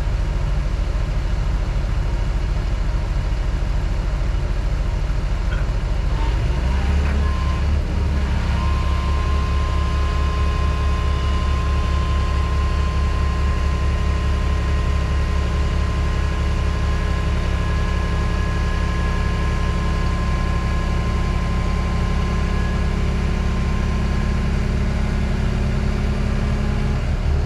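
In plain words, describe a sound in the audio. A heavy diesel engine rumbles up close and revs harder.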